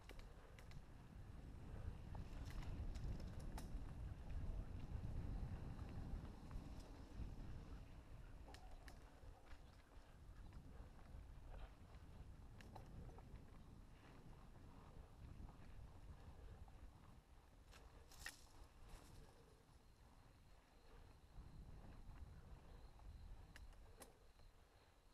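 A bike rattles and clicks over bumps.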